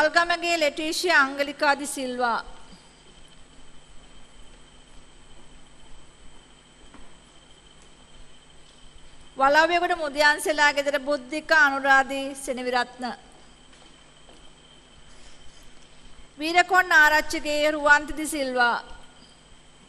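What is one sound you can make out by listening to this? A woman reads out clearly over a loudspeaker in a large hall, in short bursts with pauses between.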